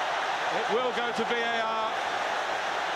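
A crowd of fans sings a loud chant together.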